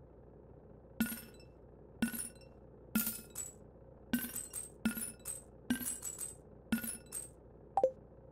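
Short bright chimes ring out again and again.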